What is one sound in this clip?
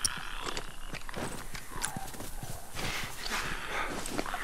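Footsteps tread through grass.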